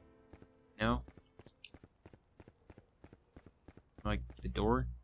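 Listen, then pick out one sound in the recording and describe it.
Footsteps tap steadily on a tiled floor.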